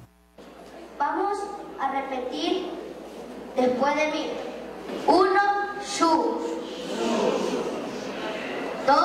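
A boy speaks with animation into a microphone.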